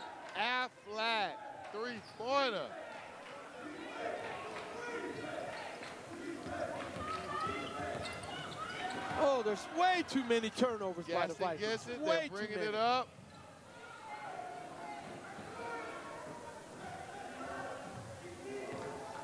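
A crowd of spectators murmurs in a large echoing gym.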